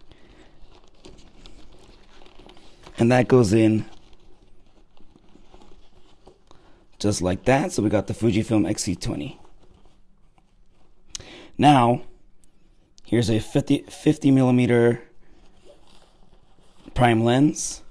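Fabric rustles as hands rummage through a bag.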